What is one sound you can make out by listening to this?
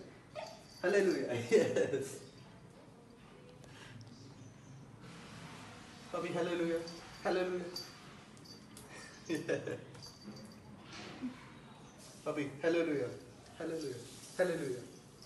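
A young man talks playfully to a puppy close by.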